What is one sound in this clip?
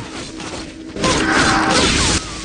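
A magic spell whooshes and crackles.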